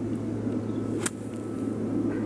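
A golf club hits a ball with a crisp click.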